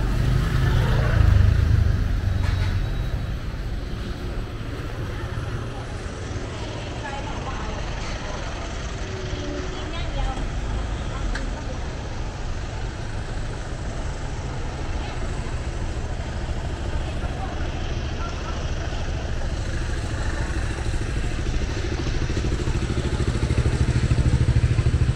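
Traffic hums steadily on a busy street outdoors.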